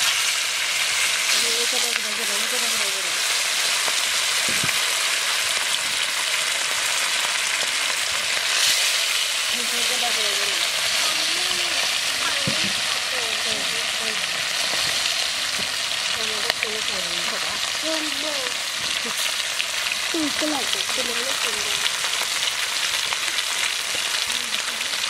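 Fish sizzles loudly in hot oil in a pan.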